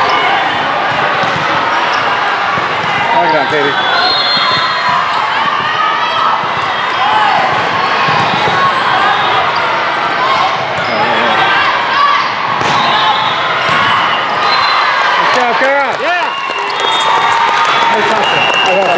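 Many voices echo and shout across a large indoor hall.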